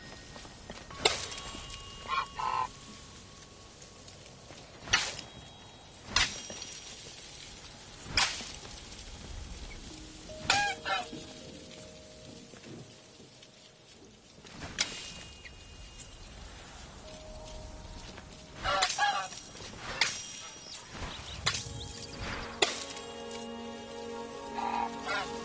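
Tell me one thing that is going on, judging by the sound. Paint splatters wetly in short, sharp bursts.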